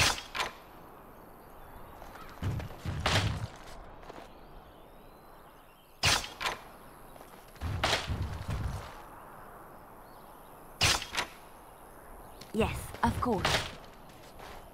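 Metal clicks and clanks in short bursts as traps are disarmed.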